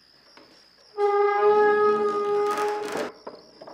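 A wooden door creaks and bangs open.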